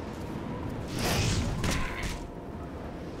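Fists strike a creature with heavy thuds.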